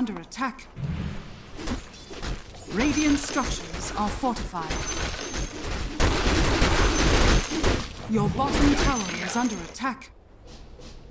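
Magic blasts and weapon strikes crackle and thud in a fierce fight.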